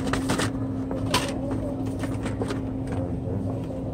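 Plastic toy packages rattle and click as a hand sorts through them.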